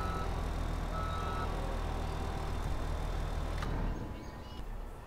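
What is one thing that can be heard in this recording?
A loader's engine idles with a low, steady rumble.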